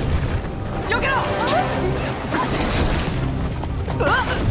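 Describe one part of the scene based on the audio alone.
A young woman shouts in alarm.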